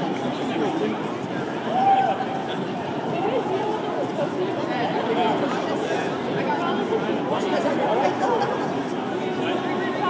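Men talk quietly with each other close by.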